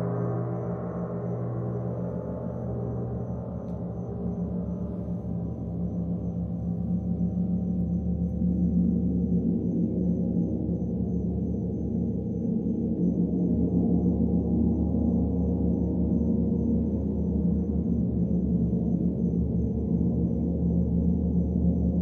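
A large gong hums and swells with a deep, rolling shimmer.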